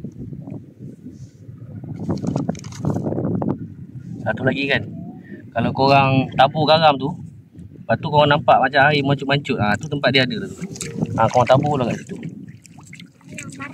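Water splashes softly as a hand digs into shallow wet sand.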